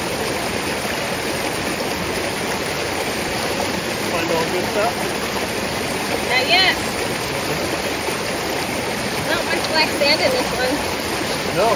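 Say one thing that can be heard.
Water splashes and pours from a pan into a stream.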